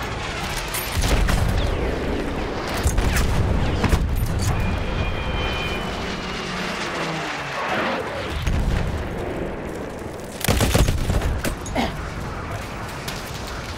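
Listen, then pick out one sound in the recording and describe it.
Bullets smack into a wall and the ground.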